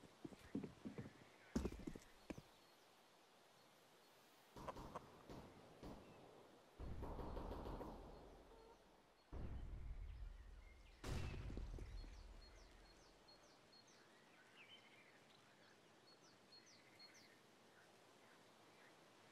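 Footsteps tread on hard floors and stairs.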